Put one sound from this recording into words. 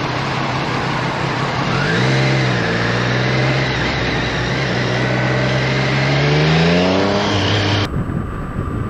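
A motorcycle engine revs loudly, rising and falling in pitch as it speeds up.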